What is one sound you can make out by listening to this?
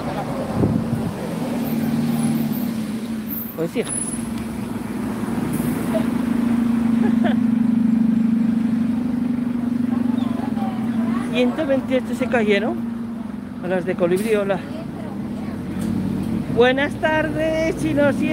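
A bus engine idles and hums close by.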